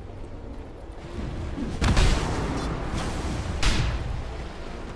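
Magical blasts burst with loud whooshes.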